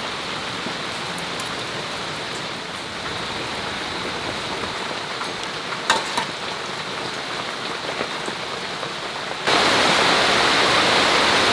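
Water bubbles and simmers in a pot.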